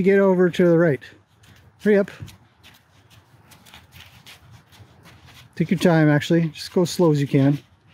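A horse's hooves thud softly on dirt as it walks.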